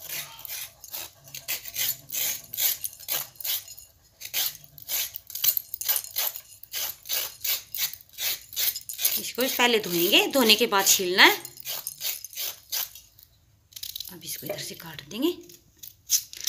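A knife scrapes repeatedly against something firm.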